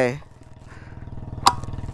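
A key clicks in a metal lock.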